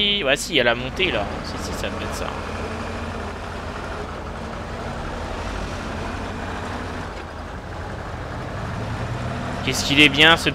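A truck engine rumbles steadily as the truck drives slowly over rough ground.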